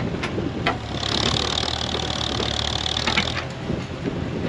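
Hydraulics whine as a digger arm lifts.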